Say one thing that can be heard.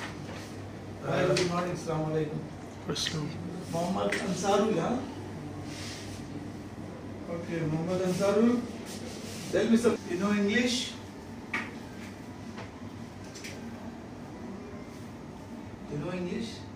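A man speaks calmly nearby in a quiet room.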